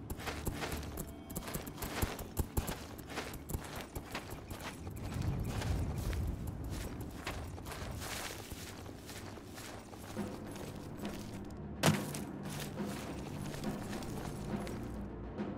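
Footsteps tread steadily over gravel, grass and stone.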